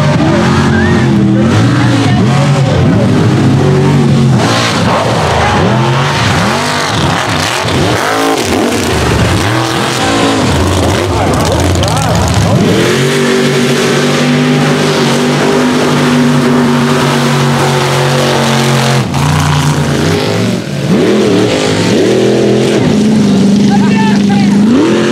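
Big truck engines roar and rev loudly outdoors.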